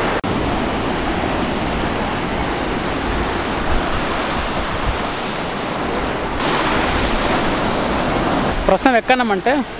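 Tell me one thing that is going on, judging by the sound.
Waves wash up on sand close by.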